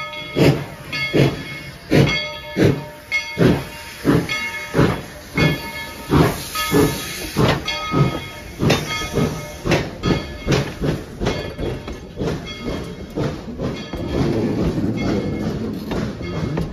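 Metal wheels clack and squeal on the rails.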